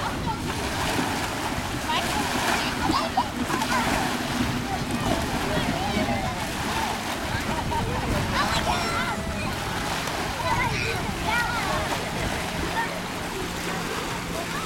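Small waves splash against the shore.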